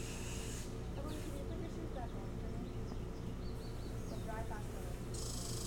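A bird of prey gives short, high chirping calls nearby.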